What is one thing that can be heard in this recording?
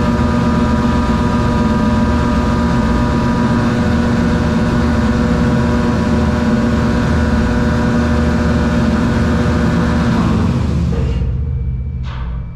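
An engine runs with a steady, loud hum, then winds down and stops.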